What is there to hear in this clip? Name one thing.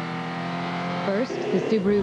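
A car engine hums.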